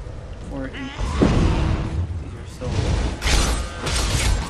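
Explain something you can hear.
Magic fire bursts and crackles during a fight.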